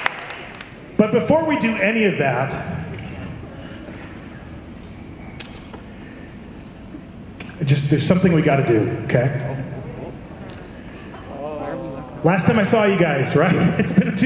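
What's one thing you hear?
A man talks animatedly through a microphone in a large echoing hall.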